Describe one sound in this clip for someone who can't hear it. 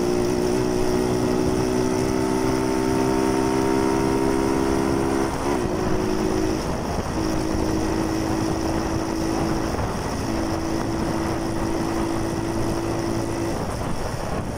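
A motorcycle engine hums steadily, dropping in pitch as it shifts gear.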